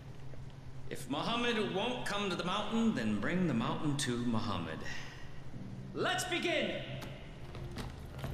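A man proclaims loudly with animation.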